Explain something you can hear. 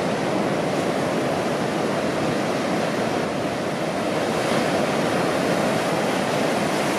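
Ocean waves roll in and break steadily in a continuous roar.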